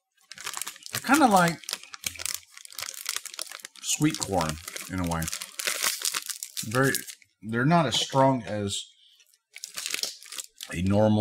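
A man talks with animation, close to the microphone.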